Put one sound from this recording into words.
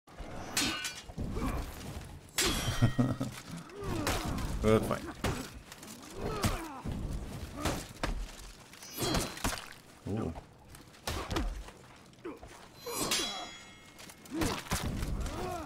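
Metal blades clash and ring in a sword fight.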